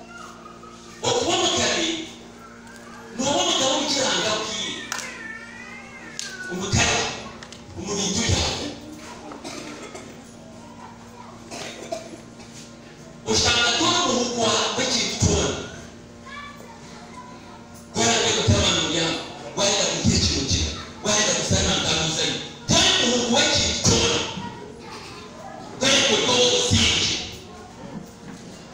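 A man preaches loudly with animation, heard in bursts in a large echoing hall.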